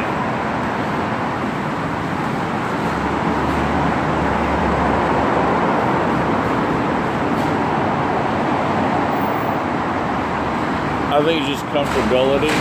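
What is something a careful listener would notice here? Traffic rushes past steadily on a nearby road.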